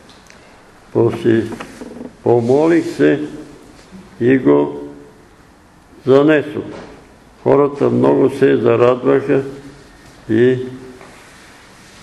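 An elderly man reads aloud slowly in an echoing room, pausing between phrases.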